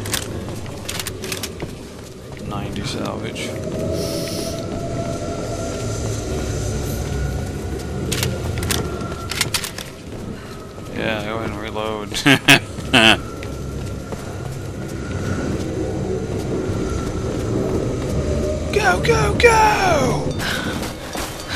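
Footsteps crunch on snow and stone.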